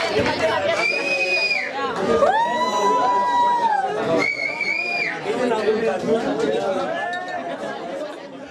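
A singer sings long held notes through a loudspeaker.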